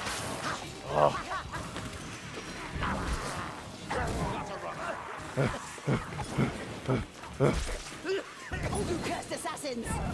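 Blades swing and strike with sharp hits.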